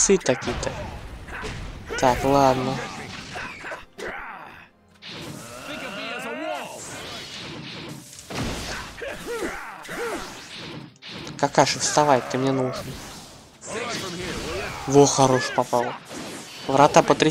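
Blows and impacts land in quick bursts during a fight.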